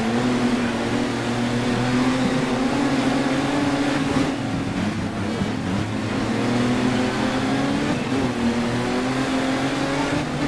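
A racing engine roars steadily, its pitch dipping and rising with gear changes.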